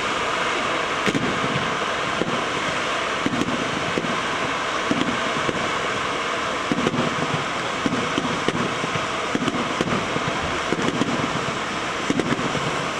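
Fireworks crackle and bang overhead.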